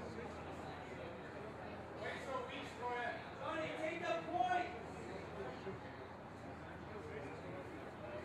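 A man talks calmly with another man at close range.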